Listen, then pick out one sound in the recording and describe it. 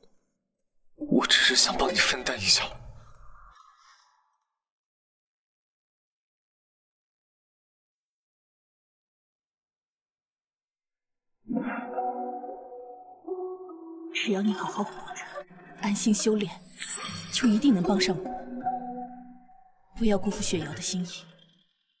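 A young woman speaks tearfully.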